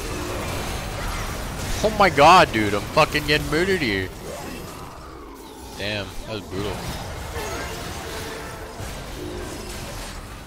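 Game spells burst and crackle during a fight.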